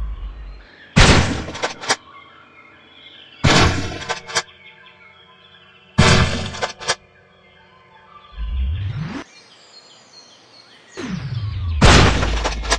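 A game shotgun fires loud blasts, each followed by a rolling boom.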